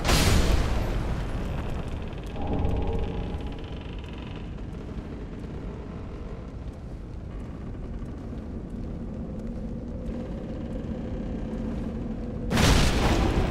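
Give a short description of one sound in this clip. Footsteps crunch over rough ground.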